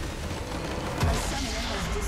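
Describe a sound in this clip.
A game structure explodes with a deep boom.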